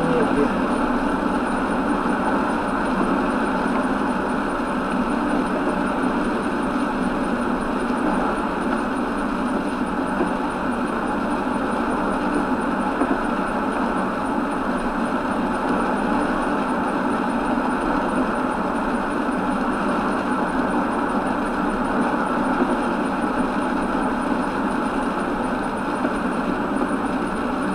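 A car drives steadily along a wet road, tyres hissing.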